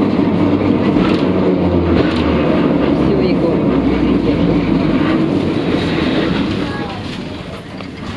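A tram rumbles and rattles along the rails.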